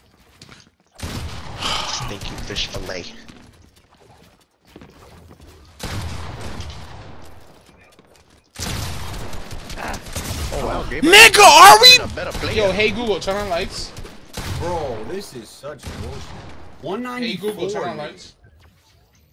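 Video game gunshots and building sounds clatter in short bursts.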